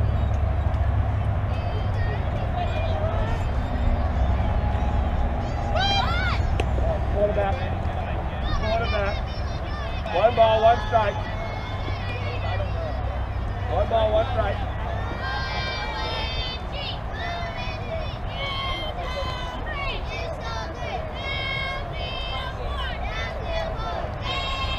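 Girls on a softball field shout and cheer outdoors.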